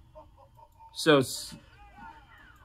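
A bright burst of game sound effects plays from a television speaker.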